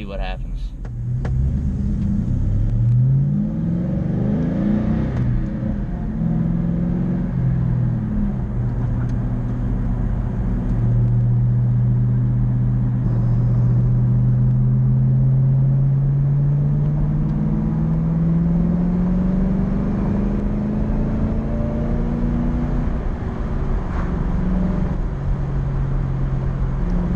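A car engine revs, rising and falling in pitch as the car accelerates through the gears.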